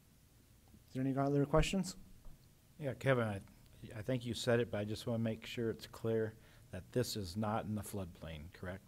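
Another man speaks through a microphone in a large room.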